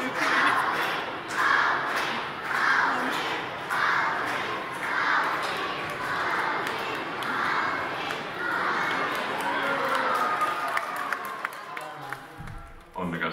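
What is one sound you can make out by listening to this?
A large crowd chants rhythmically in an echoing hall.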